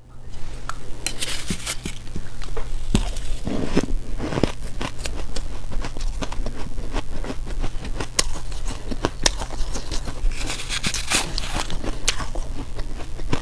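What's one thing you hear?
A metal spoon scrapes and clinks against a metal bowl.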